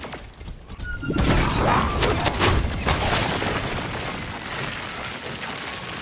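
A magic blast crackles and fizzes loudly.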